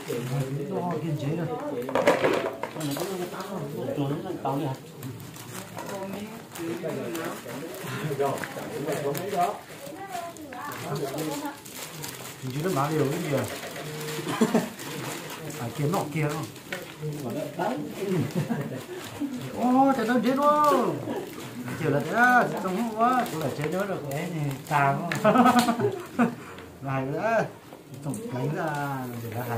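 Several people talk and laugh nearby.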